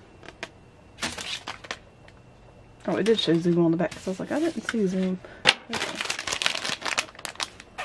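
A foil card pack crinkles and rustles in someone's hands.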